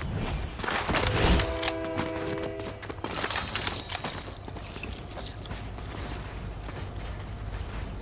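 Footsteps patter quickly on pavement in a game.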